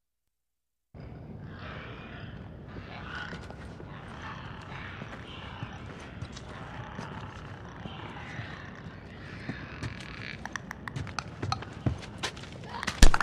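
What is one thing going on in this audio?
Footsteps creak softly on wooden floorboards.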